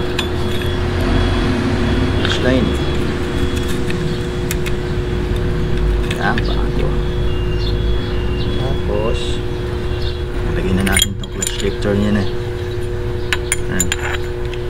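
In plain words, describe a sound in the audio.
Metal parts clink and scrape as they are handled.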